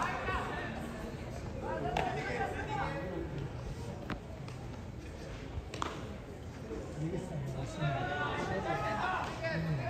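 Young men shout and call out across an open ballfield.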